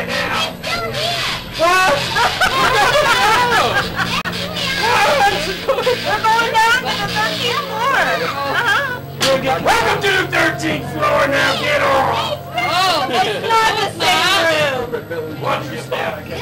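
Young women talk excitedly close by, with voices overlapping.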